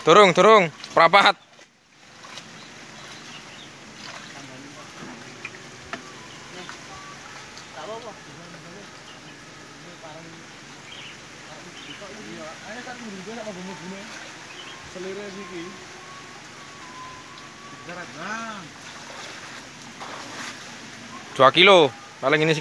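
Water splashes as a young man wades and lifts a net.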